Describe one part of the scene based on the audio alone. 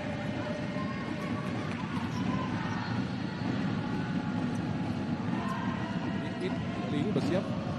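Sneakers squeak sharply on an indoor court.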